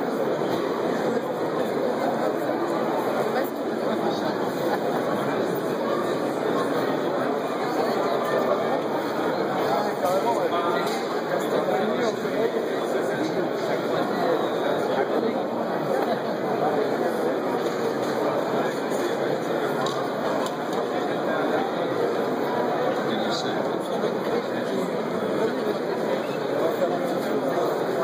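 A large crowd chatters steadily in a big echoing hall.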